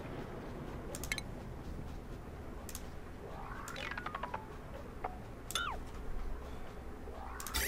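Short electronic clicks sound now and then as menu options are picked.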